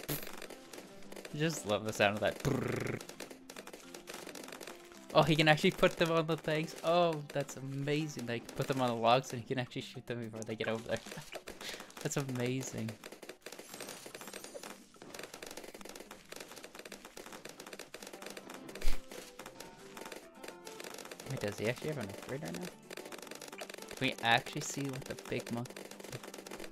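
Small pops and zaps of a video game's sound effects go on in quick succession.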